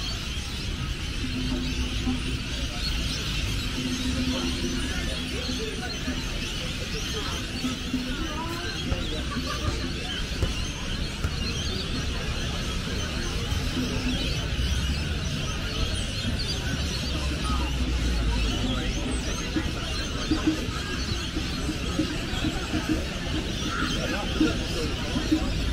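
A crowd of men and women chatters at a distance outdoors.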